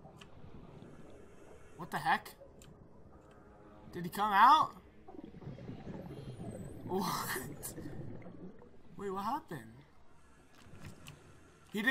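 Water swooshes as a diver swims underwater.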